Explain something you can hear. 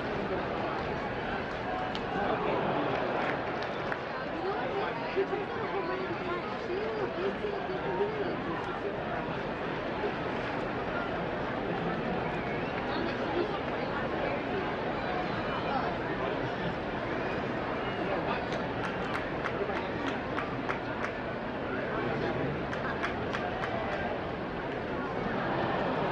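A large stadium crowd murmurs and cheers steadily outdoors.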